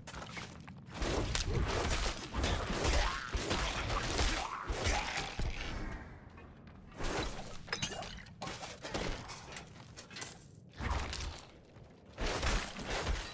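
Heavy blows and clashing weapons strike in a fight.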